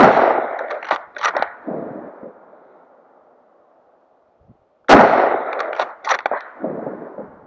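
A rifle bolt clicks as it is worked.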